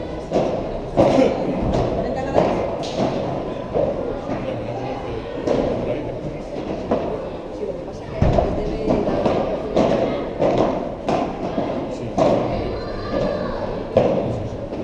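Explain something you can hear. Padel rackets strike a ball with sharp pops in an echoing indoor hall.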